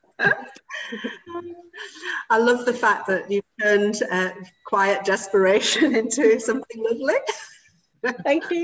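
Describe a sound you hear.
An older woman talks warmly over an online call.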